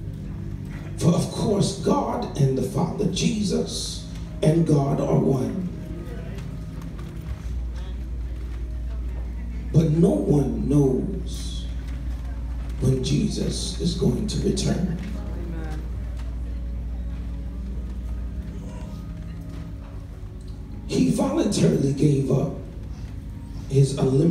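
A man preaches with feeling into a microphone, heard through loudspeakers in a large echoing hall, in bursts with pauses between.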